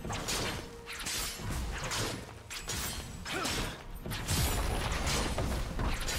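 Video game spells whoosh and crackle in a rapid fight.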